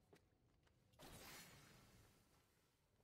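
A blade whooshes in a sharp, swirling slash.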